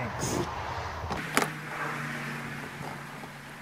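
A plastic pump handle clicks against a sprayer.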